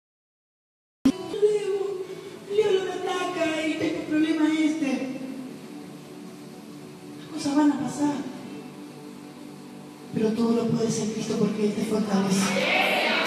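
A young woman sings into a microphone, amplified through loudspeakers in a large echoing hall.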